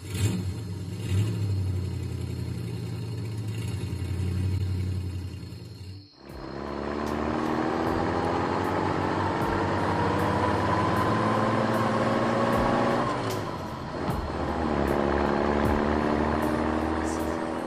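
A truck engine rumbles and revs, rising in pitch as it speeds up.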